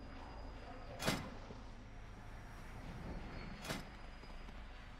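Game sound effects clash and ring.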